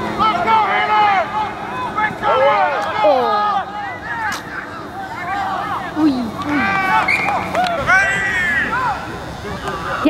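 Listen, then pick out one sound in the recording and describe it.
Young men shout and call to each other outdoors on an open field.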